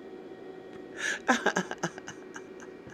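A middle-aged woman laughs softly close to a microphone.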